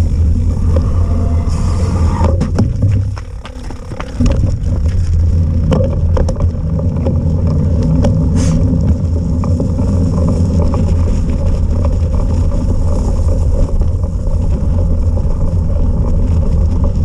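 Tyres roll over a wet path with light crunching.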